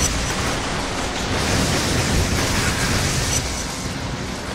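A fiery explosion booms and roars.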